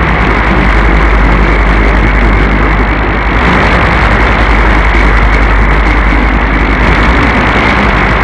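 A radio receiver plays steady, muffled static.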